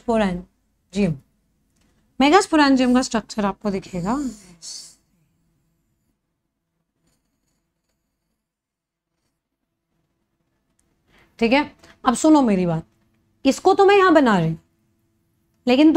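A young woman speaks with animation into a close microphone, pausing now and then.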